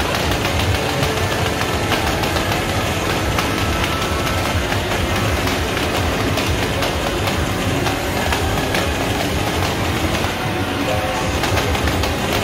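Hands tap and slap a touch panel.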